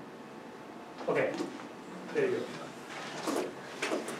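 A man speaks calmly to a room, heard from a short distance.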